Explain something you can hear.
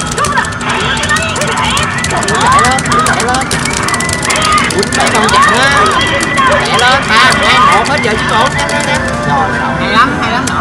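An arcade game plays bright electronic music and chirping sound effects.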